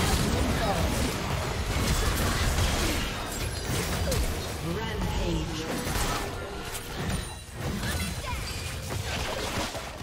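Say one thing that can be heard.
Sword strikes and impacts clash repeatedly.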